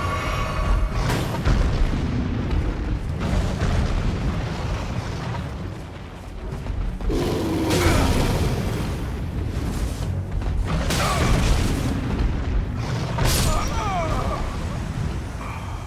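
Sword blows strike with sharp clangs and thuds.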